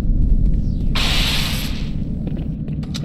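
An electric charge crackles and fizzes.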